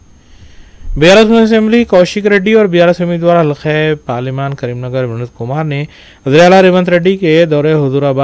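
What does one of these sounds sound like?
A young man speaks calmly and steadily into a microphone.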